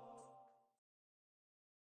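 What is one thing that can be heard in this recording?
Video game music plays and fades out.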